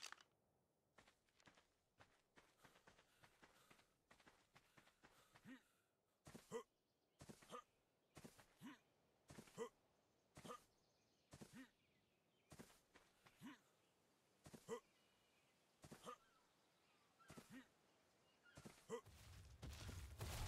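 Footsteps thud steadily through grass.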